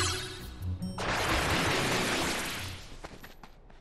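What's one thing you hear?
A magical burst whooshes and sparkles.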